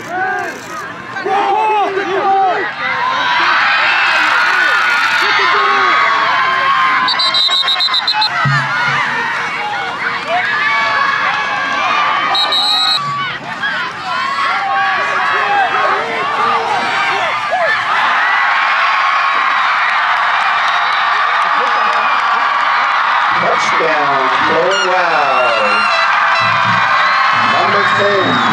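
Nearby spectators shout and talk loudly.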